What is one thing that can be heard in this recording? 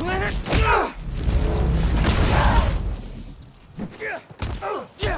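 Punches thud against a body in a brawl.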